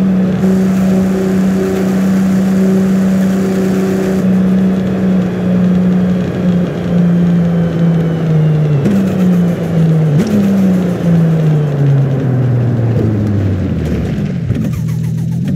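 A sports car engine roars at high revs and then drops in pitch as the car slows.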